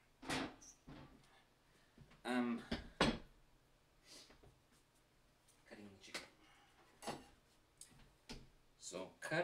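Kitchen utensils clatter and knock.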